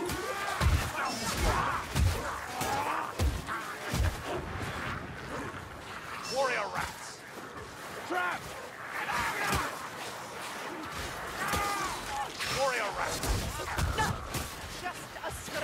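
Weapons swing and strike with heavy thuds and clangs.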